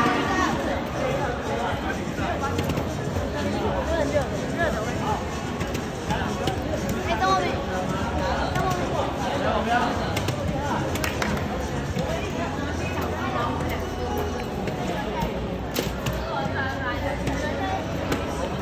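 A crowd chatters throughout in a large echoing hall.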